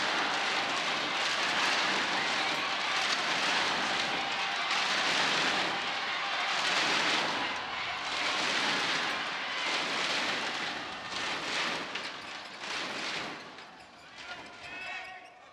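A large crowd cheers and applauds loudly in a big echoing hall, then fades away.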